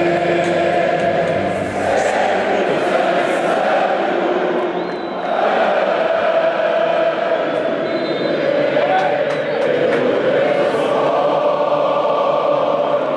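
A large stadium crowd sings and chants loudly together, echoing through the open stands.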